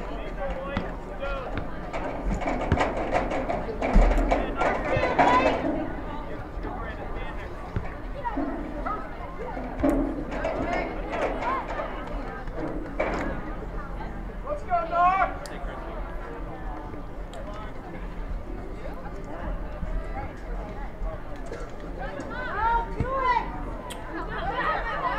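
A crowd of spectators cheers and chatters from the sidelines.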